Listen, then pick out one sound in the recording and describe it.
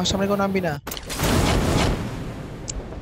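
A fiery whoosh bursts loudly.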